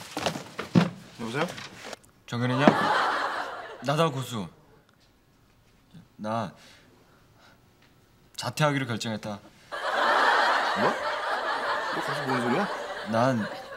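A young man answers on a phone.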